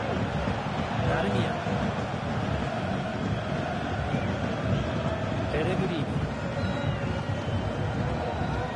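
A large crowd roars and murmurs steadily in a stadium.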